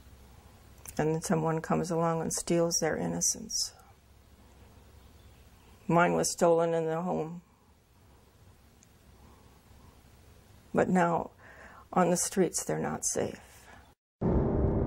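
An elderly woman speaks calmly and quietly, close by, in short phrases with pauses.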